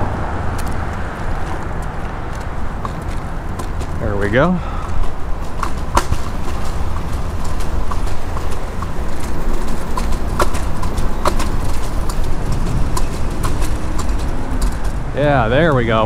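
Scooter wheels rumble and clatter over pavement joints.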